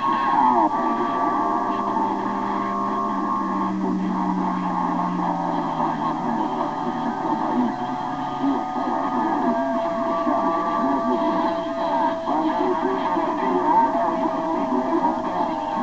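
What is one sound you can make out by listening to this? Steady whistling tones come from a radio receiver's loudspeaker.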